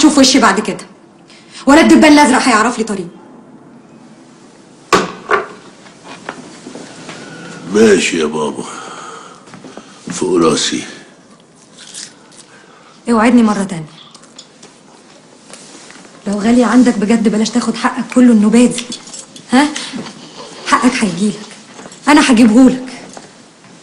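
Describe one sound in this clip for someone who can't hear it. A young woman speaks tensely.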